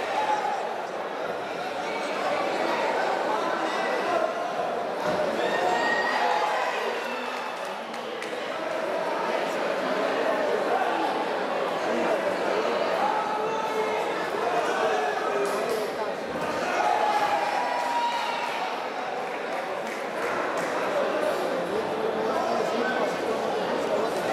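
Several people shout encouragement loudly.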